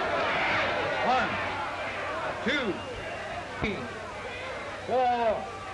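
A man shouts out a count loudly.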